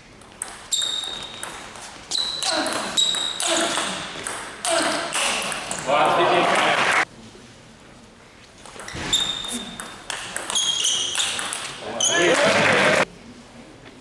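A table tennis ball clicks sharply off bats and a table in an echoing hall.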